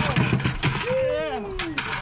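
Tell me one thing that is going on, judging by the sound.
A large fish thumps on a boat deck.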